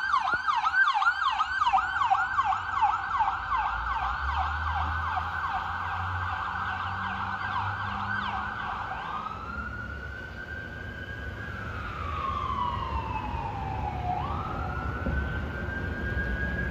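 An ambulance siren yelps rapidly, then switches to a slow rising and falling wail.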